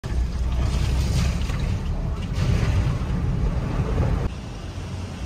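Water splashes loudly against a car as it drives through a flooded road.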